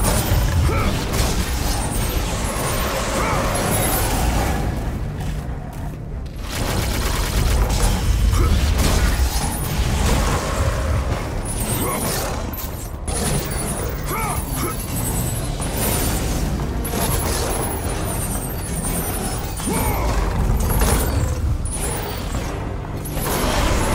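A creature growls and roars.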